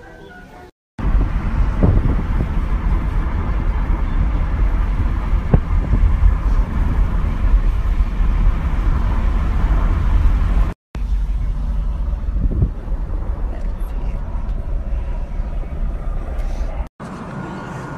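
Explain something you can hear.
Wind rushes loudly past an open car window as the car drives along.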